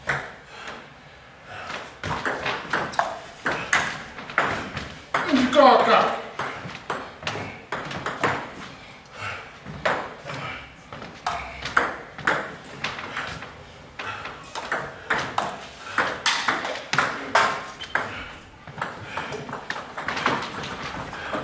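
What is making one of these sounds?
A ping pong ball clicks quickly back and forth off paddles and a table.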